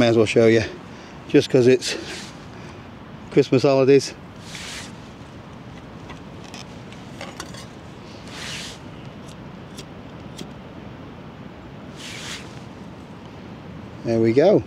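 Small metal parts click and clink as they are fitted together.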